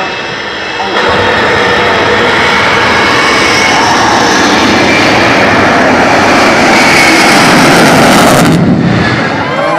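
A jet-powered vehicle roars loudly as it speeds past.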